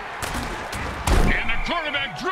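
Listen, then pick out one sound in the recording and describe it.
Armoured players collide with a heavy thud.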